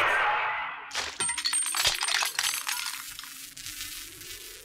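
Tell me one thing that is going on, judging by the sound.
Metal pieces clatter onto the ground.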